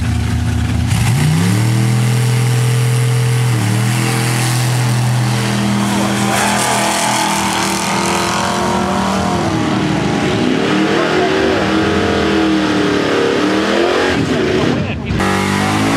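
Powerful engines roar loudly, rising in pitch as cars race away.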